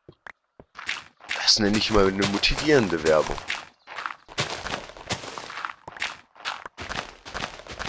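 A pickaxe chips and crumbles blocks of earth in quick, repeated knocks.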